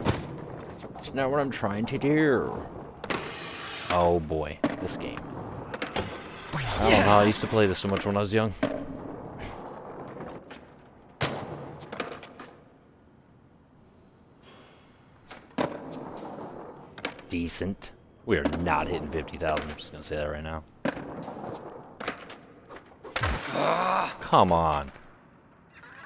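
A skateboard rolls and grinds over concrete and metal rails.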